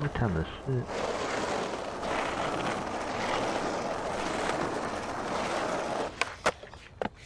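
Skateboard wheels roll roughly over asphalt.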